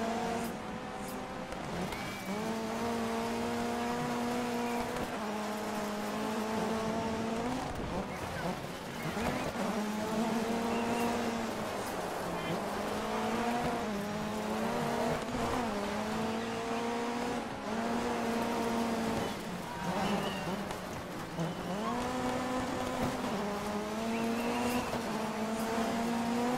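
Tyres skid and crunch over gravel.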